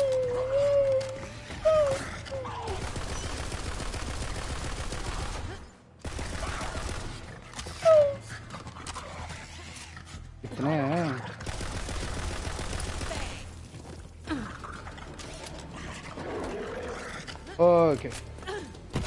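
Creatures screech and growl.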